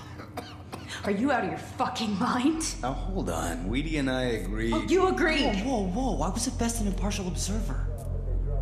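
A man answers defensively with animation.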